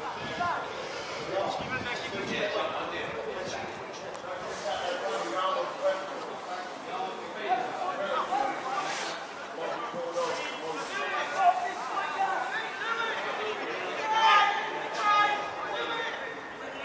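Men nearby talk and shout encouragement.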